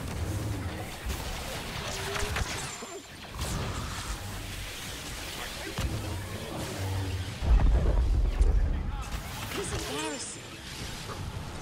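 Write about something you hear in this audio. Electric lightning crackles and buzzes.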